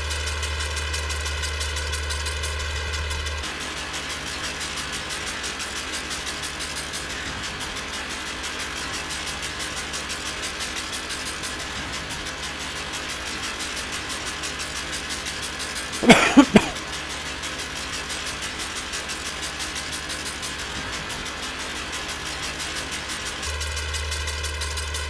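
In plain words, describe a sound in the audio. A mower whirs as it cuts grass.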